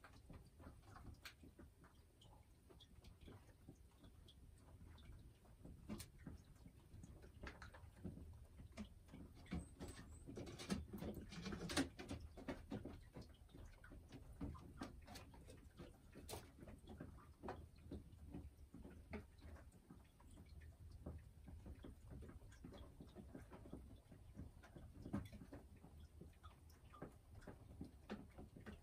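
A hen clucks and murmurs softly close by.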